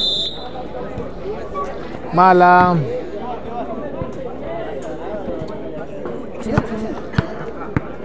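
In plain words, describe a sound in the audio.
A ball thuds as it is kicked and bounces on concrete.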